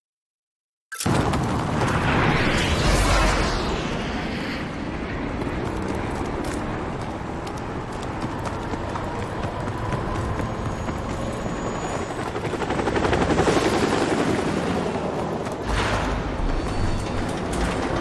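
Footsteps thud on pavement.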